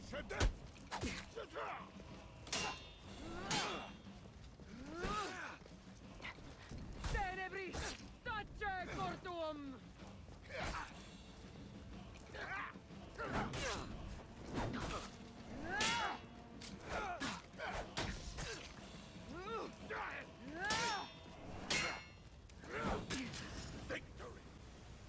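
Metal blades clash and clang repeatedly.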